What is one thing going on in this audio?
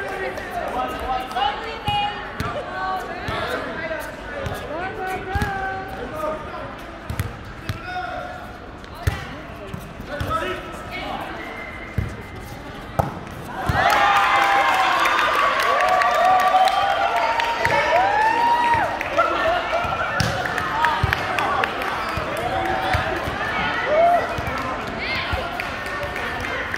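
Men shout and call out to one another in a large echoing hall.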